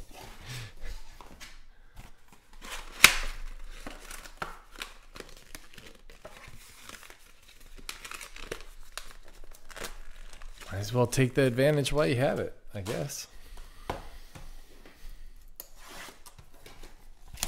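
Cardboard boxes knock and slide on a table.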